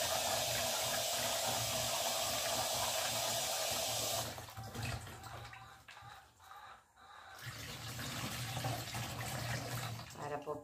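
Water splashes into a metal basin.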